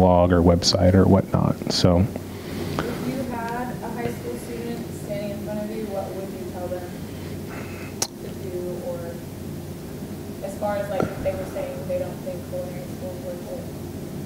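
A man speaks calmly into a microphone over loudspeakers in a large room.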